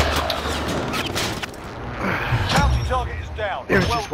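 Rapid gunshots crack nearby.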